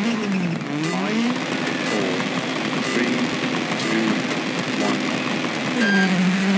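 A rally car engine revs up and down repeatedly while idling.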